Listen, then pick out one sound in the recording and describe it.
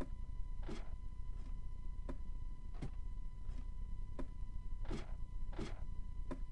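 Footsteps clatter in a steady rhythm on wooden ladder rungs.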